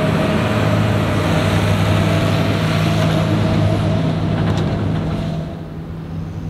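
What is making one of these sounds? A truck engine rumbles nearby.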